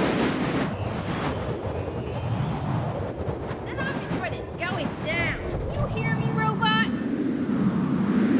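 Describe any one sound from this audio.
Coins jingle with bright chimes as they are collected.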